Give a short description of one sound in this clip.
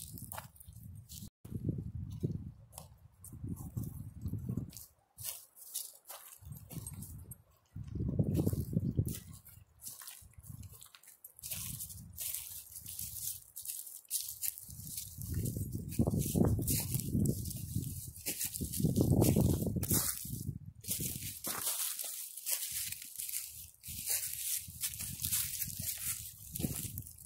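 Footsteps crunch on dry pine needles and twigs.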